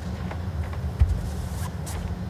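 A bowl lands with a soft thud on a carpet.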